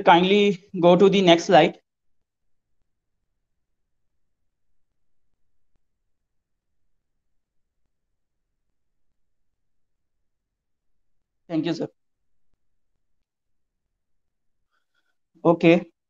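A young man speaks calmly in short bursts, heard through an online call.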